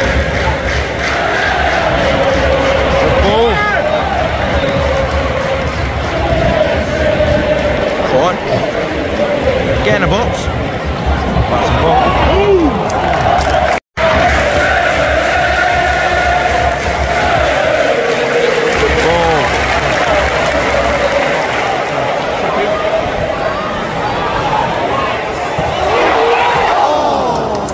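A large stadium crowd sings and chants loudly outdoors.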